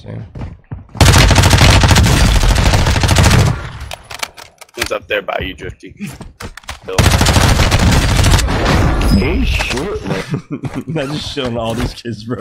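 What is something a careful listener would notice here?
Rapid gunfire bursts loudly in a video game.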